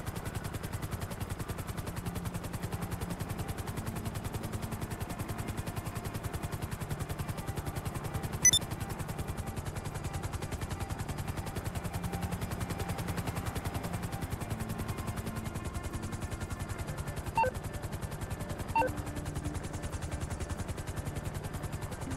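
A small jet engine hums with a fast, pulsing drone.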